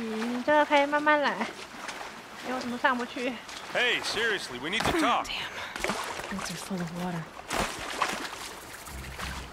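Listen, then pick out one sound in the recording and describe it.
Water splashes as a figure wades through it.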